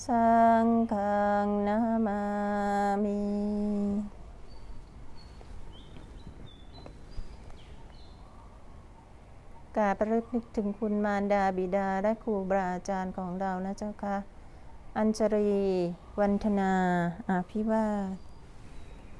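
A group of women chant slowly together in unison.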